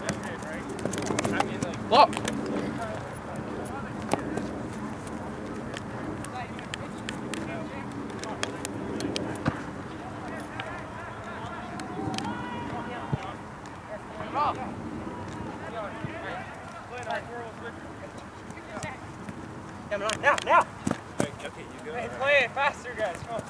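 Young men shout to each other outdoors on an open field.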